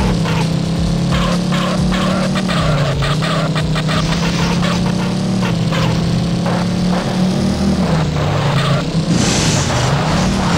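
Tyres crunch and skid over loose dirt.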